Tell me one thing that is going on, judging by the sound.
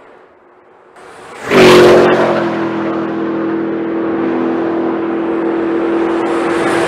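A car engine roars loudly as it speeds past close by.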